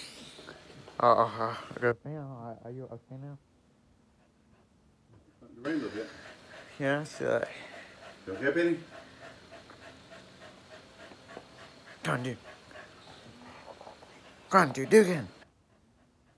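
A dog grumbles and whines up close.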